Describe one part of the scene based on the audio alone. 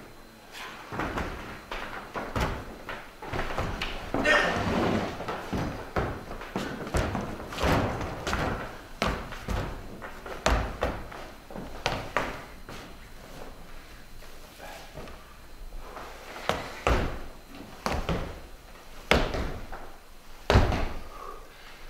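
Objects thump on a wooden floor.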